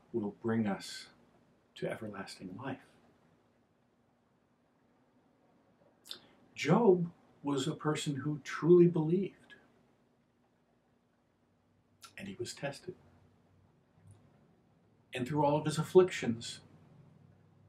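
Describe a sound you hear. An older man speaks calmly and slowly into a nearby microphone, with long pauses.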